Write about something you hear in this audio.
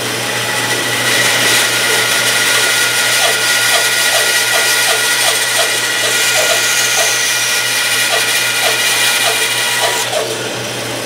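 A band saw blade cuts through a block with a grinding rasp.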